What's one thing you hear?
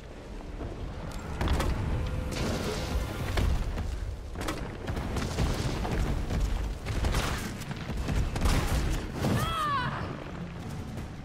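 A large creature roars and snarls.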